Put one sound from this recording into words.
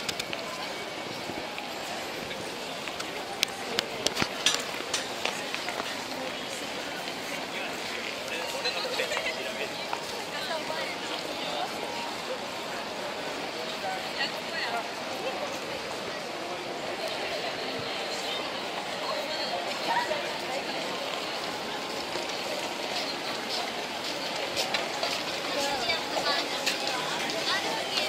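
A crowd of people murmurs and chatters nearby, outdoors in a busy open space.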